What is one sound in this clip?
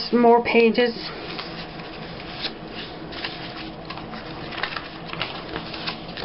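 Paper pages rustle and crinkle as they are shuffled by hand.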